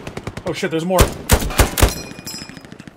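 A rifle fires several loud shots in quick succession.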